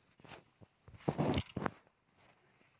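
A book flips open with a papery rustle.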